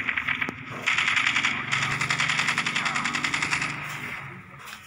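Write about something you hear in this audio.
A rifle fires a rapid burst of shots close by.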